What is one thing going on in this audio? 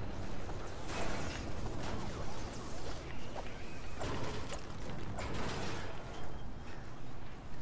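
A pickaxe strikes metal in quick, ringing blows.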